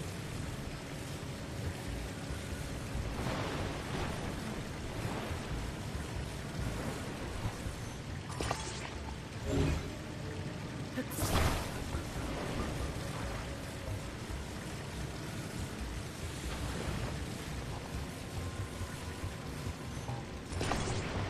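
Lava bubbles and rumbles steadily.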